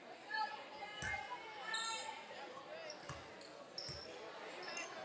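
A basketball bounces a few times on a wooden floor.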